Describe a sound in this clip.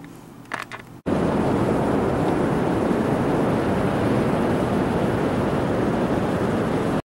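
Waves wash onto a beach nearby.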